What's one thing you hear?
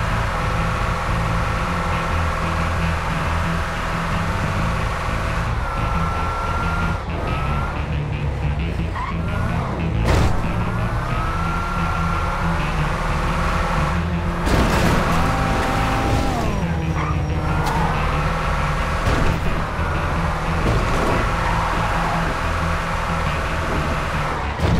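A heavy truck engine drones as the truck drives uphill.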